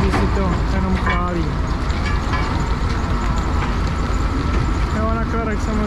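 A wheel loader's diesel engine roars nearby.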